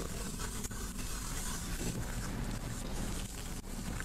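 A cloth rubs and wipes against a hard surface.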